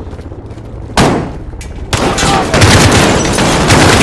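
Rifles fire in rapid bursts at close range.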